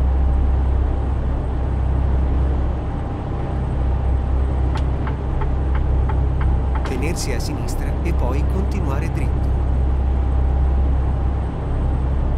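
A truck engine hums steadily with a deep drone.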